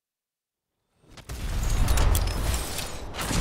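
Heavy armoured footsteps thud on rocky ground.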